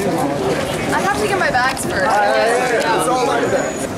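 A young woman speaks cheerfully.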